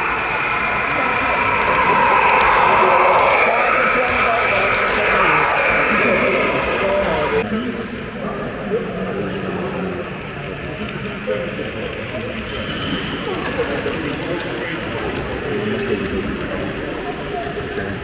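A model train hums and rattles along the track as it passes close by.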